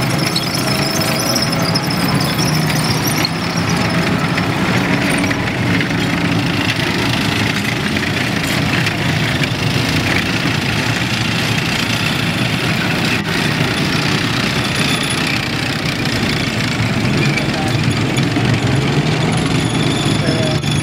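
Metal tracks clatter and squeak over muddy ground.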